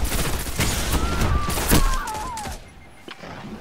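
A gun fires in a video game.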